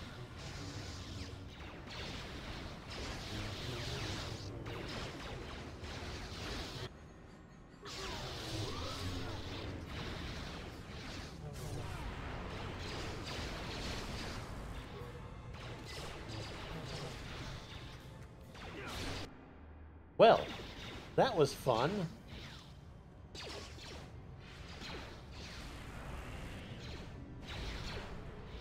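Lightsabers hum and clash in a fast duel.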